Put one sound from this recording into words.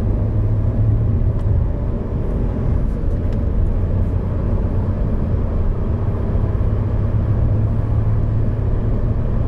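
A car engine hums steadily at high revs while driving.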